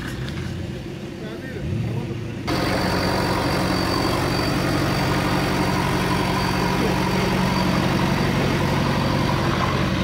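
A powerful off-road engine roars and strains close by.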